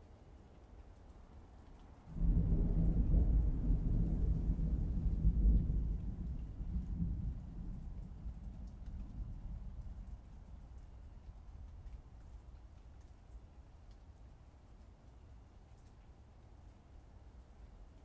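Fingers tap softly on a laptop keyboard.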